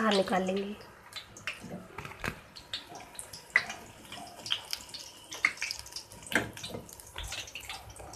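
Oil sizzles as food fries in a pan.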